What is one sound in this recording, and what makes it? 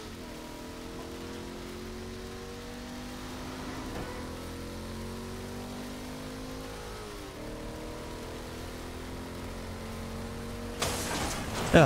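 A car engine roars and shifts gears at high speed.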